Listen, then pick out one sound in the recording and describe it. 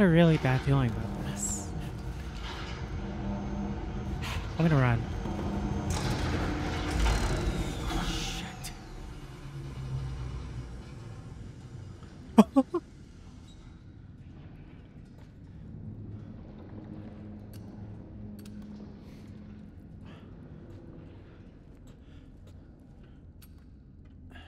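A low machine hum drones steadily.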